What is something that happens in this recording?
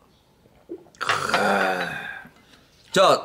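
A man exclaims loudly with a drawn-out sound after drinking.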